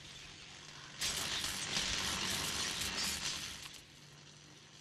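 A heavy metal door opens with a loud rushing hiss.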